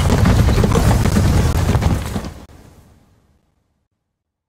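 A giant beetle scuttles along with a heavy, rattling rumble that fades away.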